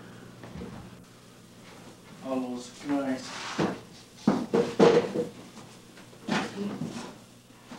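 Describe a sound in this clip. A large board shuffles and bumps as it is moved about.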